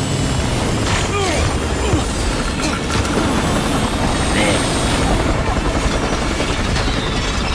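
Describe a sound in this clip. A helicopter's rotor thumps loudly and steadily.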